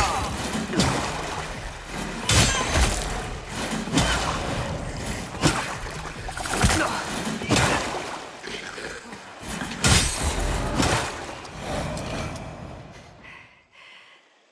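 Water splashes loudly as someone wades through it.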